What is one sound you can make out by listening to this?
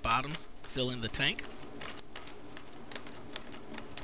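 A plastic drain hose clicks and rattles as it is handled.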